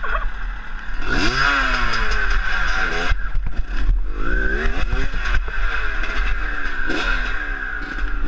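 A dirt bike engine revs up and down repeatedly, close by.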